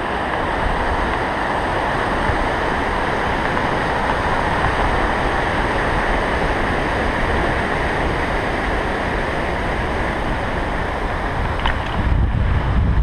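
A river rushes loudly over rocks.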